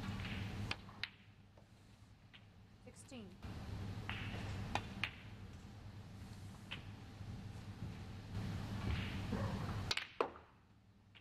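Snooker balls clack against each other.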